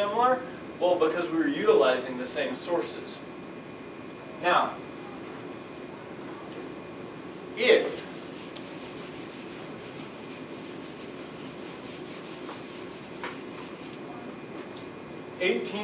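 A man speaks calmly, in short bursts with pauses.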